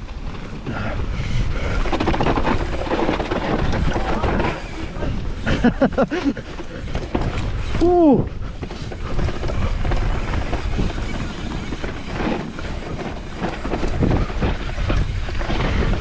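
Mountain bike tyres rumble and rattle over a bumpy dirt trail.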